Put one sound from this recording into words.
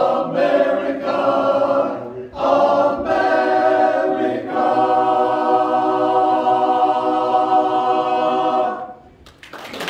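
A men's choir sings in harmony in a room with some echo.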